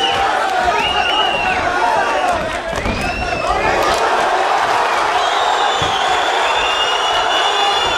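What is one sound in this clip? Punches thud against a fighter's body.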